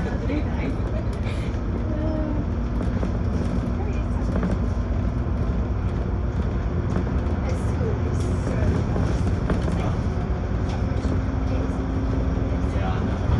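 A vehicle engine rumbles steadily while driving along a road.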